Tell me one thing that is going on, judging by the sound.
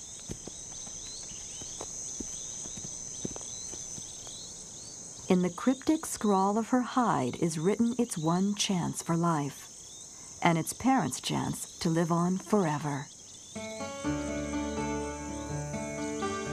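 A zebra crops grass.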